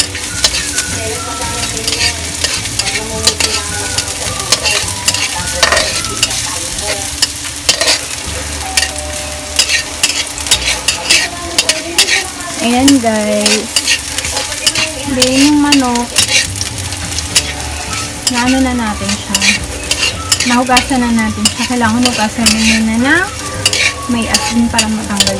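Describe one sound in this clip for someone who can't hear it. A metal spatula scrapes and clacks against a wok.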